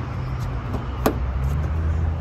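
A sedan's door latch clicks open.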